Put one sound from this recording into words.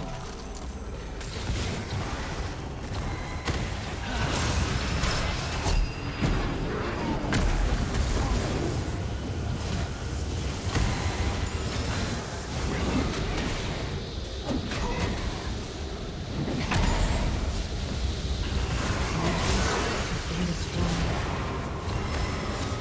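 Game hits and blasts thud in quick bursts.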